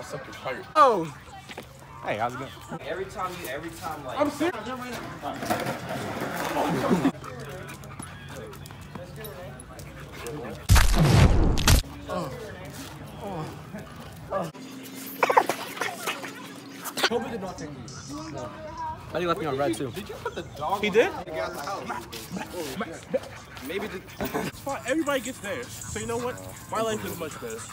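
Young men talk and shout with animation close by.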